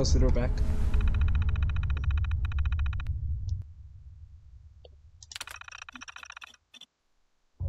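A computer terminal clicks rapidly as text prints out.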